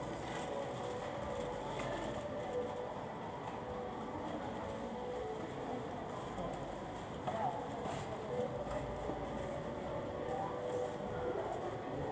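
A shopping cart rattles as it rolls along.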